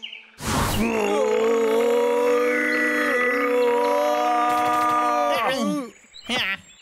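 A cartoon bear bellows a long, loud, drawn-out howl.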